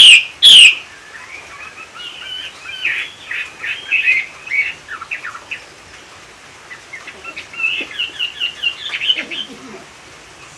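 A caged bird chirps and twitters softly.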